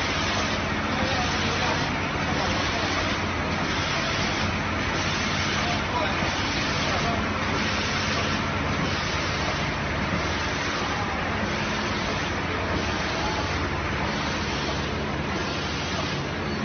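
A conveyor machine hums and clatters steadily.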